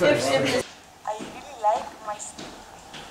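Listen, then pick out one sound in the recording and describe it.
A young woman talks brightly.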